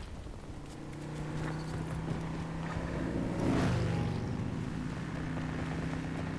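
A heavy vehicle's engine rumbles steadily close by.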